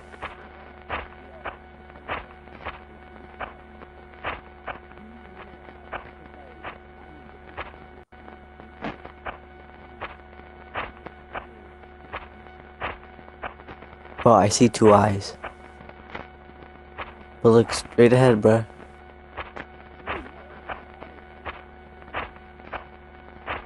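Footsteps crunch steadily on a leafy forest floor.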